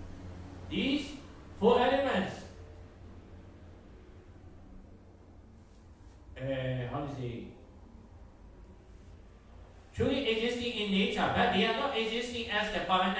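A man speaks calmly into a microphone, with pauses, in a slightly echoing room.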